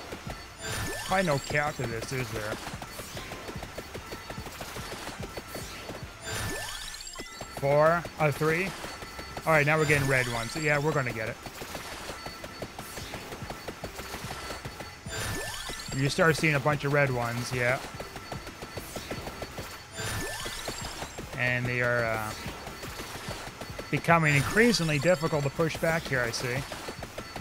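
Rapid game sound effects crackle and chime without pause.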